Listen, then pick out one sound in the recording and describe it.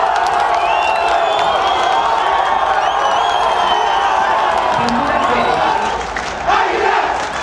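A large stadium crowd chants and sings together outdoors.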